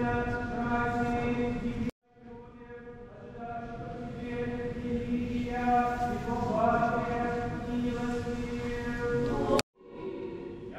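A crowd sings a slow, sustained chant in a large echoing hall.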